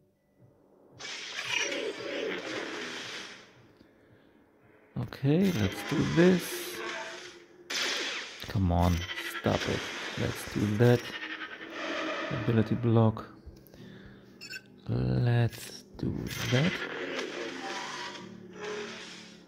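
Energy swords hum and clash in a fight.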